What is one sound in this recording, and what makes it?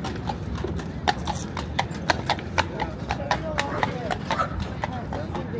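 Horse hooves clop on pavement.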